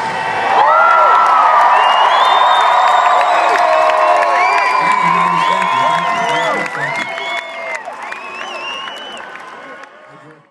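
A band plays music through loudspeakers.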